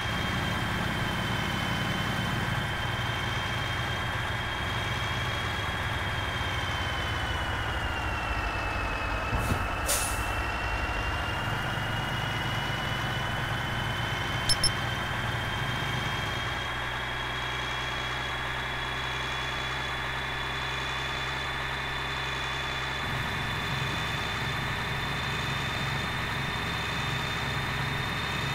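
A truck engine drones steadily, dipping slightly then rising again.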